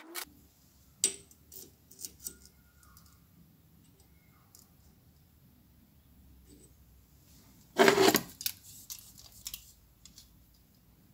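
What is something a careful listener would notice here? Metal parts click and tap together as a rod is handled.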